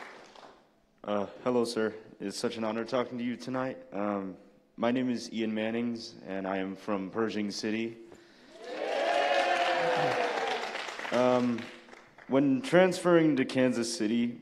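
A young man speaks through a microphone in a large hall.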